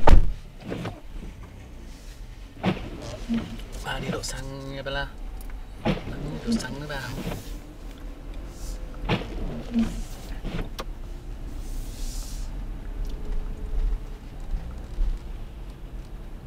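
A car engine hums low and steady from inside the car as it drives slowly.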